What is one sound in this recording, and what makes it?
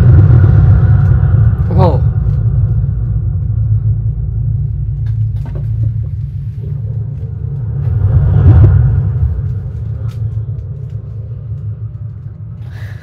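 A deep, booming rumble swells and then slowly fades.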